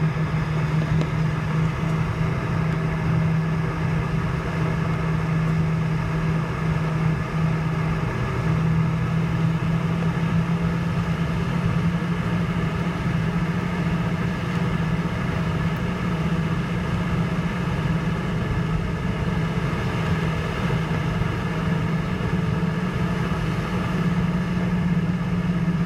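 An airliner rumbles as it taxis along the ground.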